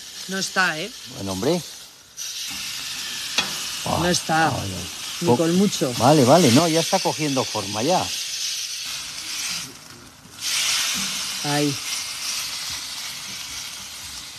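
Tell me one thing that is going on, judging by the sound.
Metal tongs scrape and clack against a grill grate.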